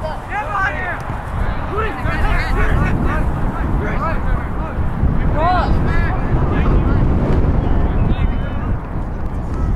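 Young players shout and call out across an open field.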